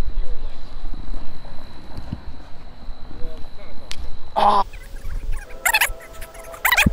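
Wind rumbles low and gusty outdoors.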